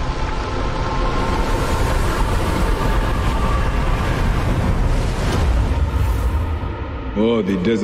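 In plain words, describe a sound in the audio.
Water gushes and splashes loudly.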